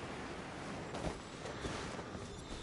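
Footsteps thud on grass as a figure lands.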